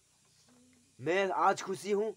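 An elderly man speaks formally into a microphone.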